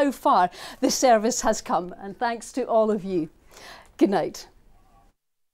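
A woman speaks clearly and briskly into a microphone.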